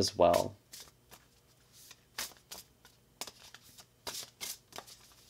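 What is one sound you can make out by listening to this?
Cards slap and flick as they are shuffled.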